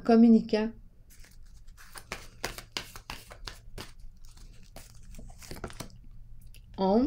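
Playing cards rustle and flick as they are shuffled.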